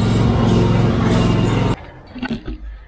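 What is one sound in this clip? A mower engine runs loudly, close by, then cuts off.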